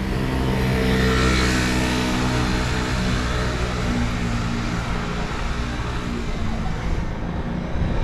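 A motor scooter engine hums steadily close by.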